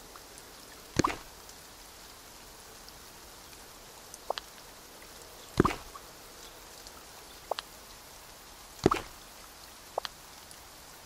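Short electronic interface clicks sound now and then.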